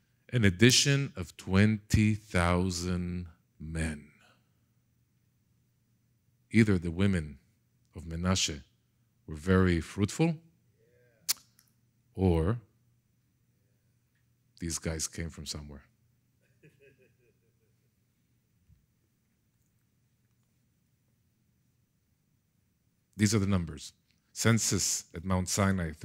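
A middle-aged man speaks through a headset microphone in a calm, lecturing tone, with pauses.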